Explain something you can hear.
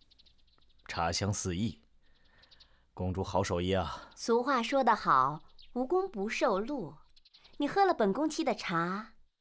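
A young woman speaks clearly and firmly nearby.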